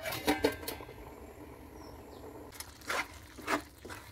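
A metal lid clanks as it is lifted off a pot.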